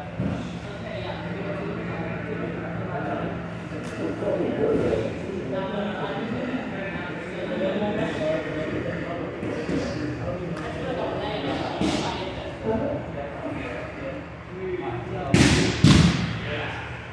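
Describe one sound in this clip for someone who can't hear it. Bare feet thud and shuffle on padded mats.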